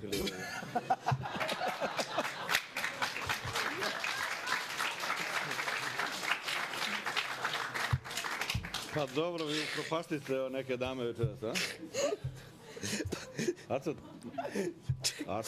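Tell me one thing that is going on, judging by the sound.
A man laughs heartily near a microphone.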